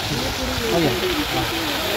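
Water from a fountain splashes steadily.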